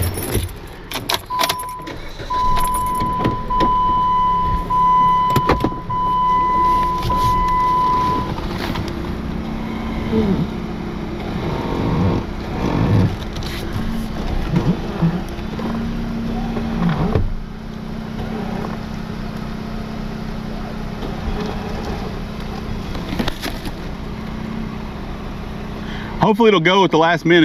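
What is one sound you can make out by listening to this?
A car engine runs.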